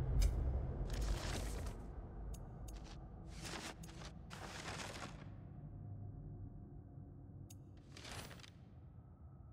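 Soft whooshing swishes sound as pages of a book flip over.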